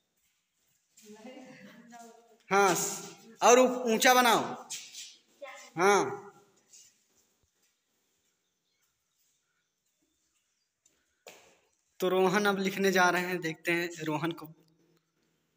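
A boy speaks loudly and with animation nearby.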